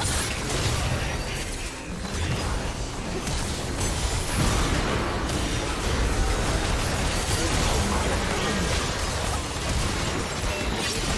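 Spell effects whoosh and crackle in rapid bursts.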